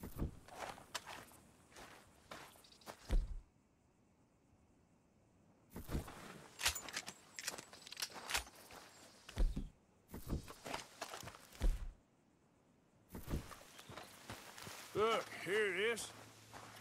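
Footsteps crunch on gravel at a walking pace.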